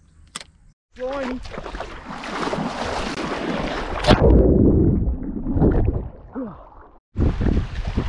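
A swimmer splashes and strokes through water close by.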